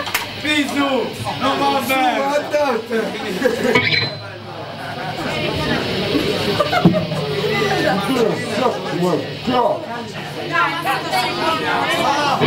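A drummer taps on a drum kit.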